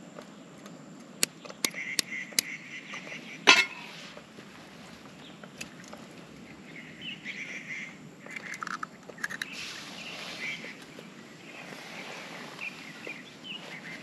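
Eggs sizzle softly as they fry in a pan.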